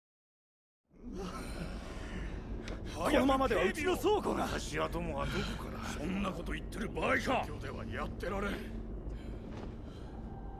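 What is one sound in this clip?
Several men talk in a large echoing hall.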